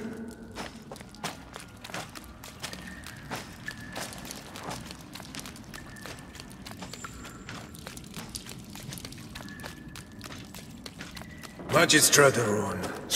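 Quick footsteps run on a stone floor.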